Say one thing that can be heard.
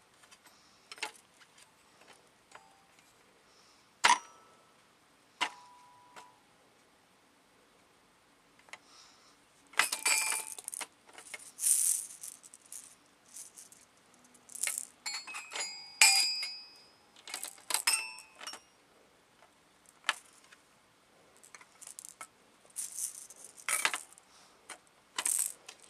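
A mallet taps the metal bars of a toy xylophone, ringing out notes.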